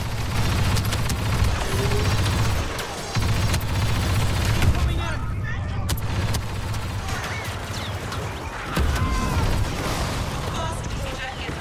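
Blaster guns fire rapid laser shots.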